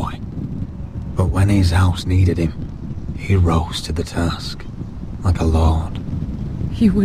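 A young man speaks calmly and solemnly.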